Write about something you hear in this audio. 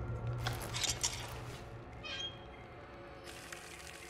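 A metal lever clanks as it is pulled.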